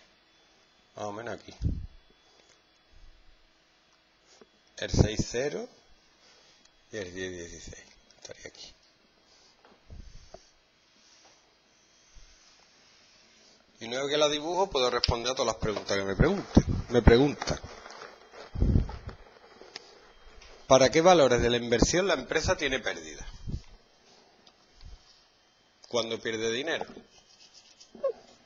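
A man speaks calmly nearby, in short bursts with pauses.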